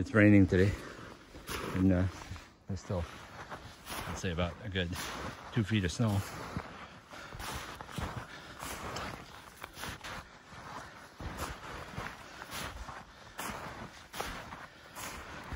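Footsteps crunch through snow close by.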